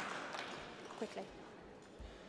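Sports shoes squeak on a court floor in a large echoing hall.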